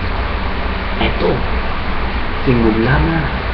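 A young man speaks briefly close to a microphone.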